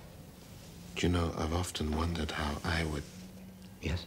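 An older man speaks quietly and thoughtfully, close by.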